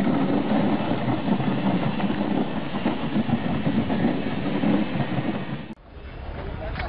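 A sled scrapes over packed snow.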